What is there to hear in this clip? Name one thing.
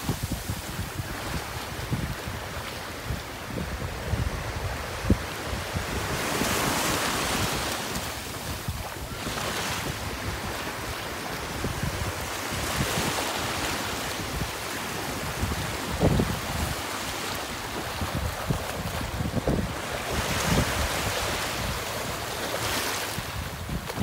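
Water splashes as a boy moves about in the shallow surf.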